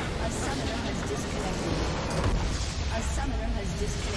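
A crystal structure shatters with a loud burst.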